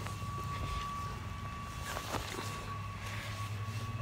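A boy talks close by.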